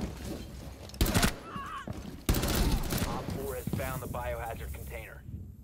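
Rifle shots crack loudly in quick bursts.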